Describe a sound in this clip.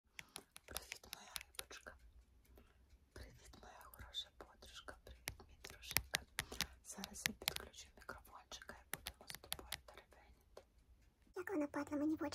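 A woman whispers close to the microphone.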